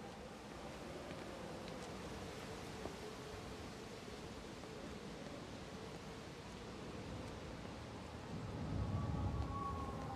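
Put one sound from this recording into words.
A gentle breeze rustles through tree leaves outdoors.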